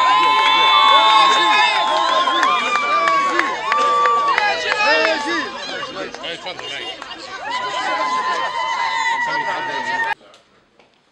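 A crowd of men talk and call out loudly close by, outdoors.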